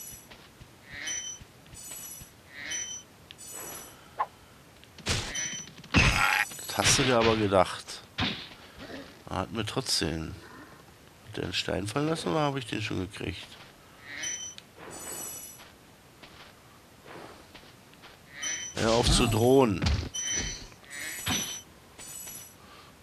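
Short bright chimes ring out again and again as treasure is picked up in a video game.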